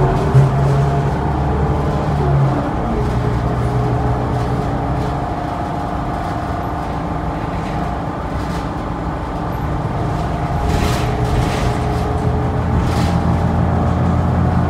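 A bus engine hums and drones steadily.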